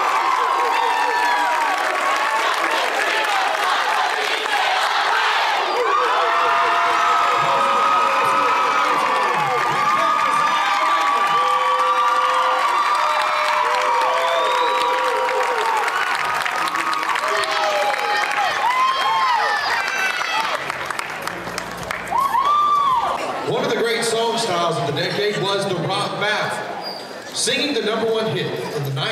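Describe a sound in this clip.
A large crowd of young people cheers, screams and whistles loudly in a big echoing hall.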